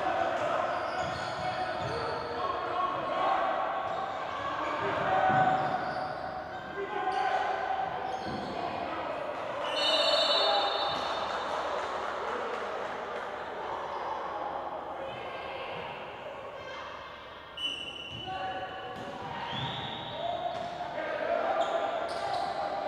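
A crowd of players and spectators calls out and chatters.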